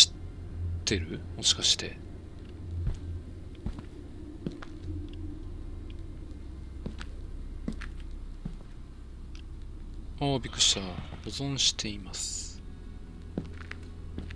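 Footsteps crunch slowly over stones and dry leaves.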